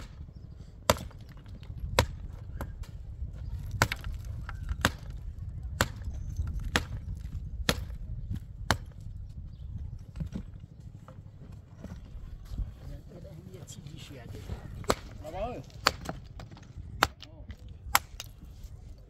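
A hammer knocks sharply on stone.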